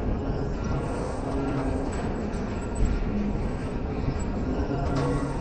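Weight plates clink on a barbell as it is pressed up and down.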